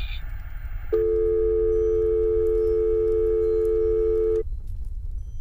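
A telephone tone sounds steadily through a receiver.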